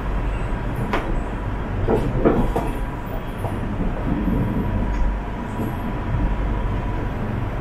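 A train rumbles steadily along the tracks.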